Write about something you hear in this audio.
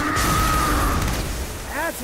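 A zombie groans and snarls close by.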